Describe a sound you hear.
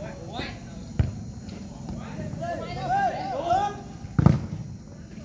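A football thumps off a player's foot.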